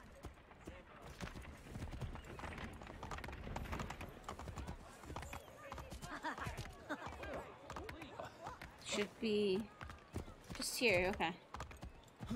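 Horse hooves clop quickly on hard ground.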